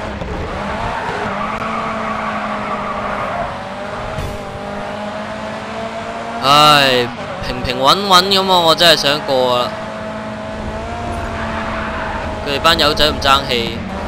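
Tyres screech as a car slides through a turn.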